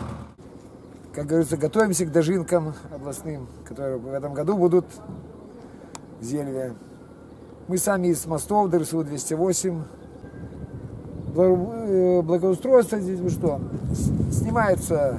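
An elderly man speaks calmly up close.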